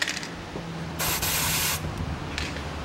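An aerosol can sprays with a short hiss.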